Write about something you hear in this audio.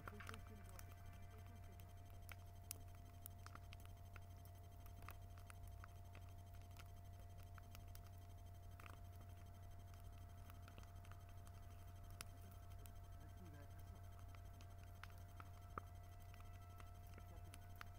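A large bonfire crackles and pops outdoors.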